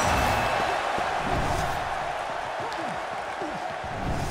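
A punch lands with a dull thump.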